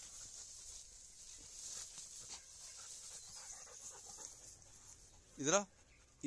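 A dog rustles through dry grass.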